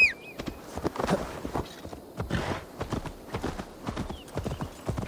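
Horse hooves thud on a dirt path.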